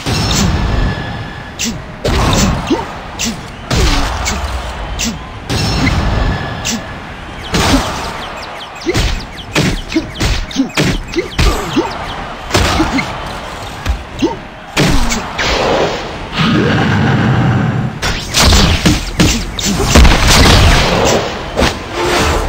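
Punches land with heavy, quick thuds.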